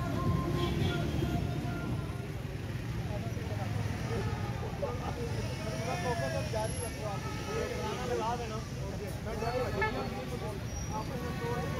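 A crowd of men talks and calls out loudly outdoors.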